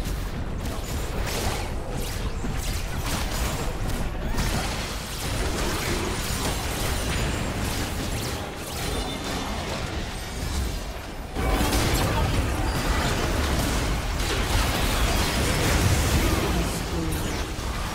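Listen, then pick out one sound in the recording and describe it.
Magic blasts crackle and boom in a hectic fight, growing louder toward the end.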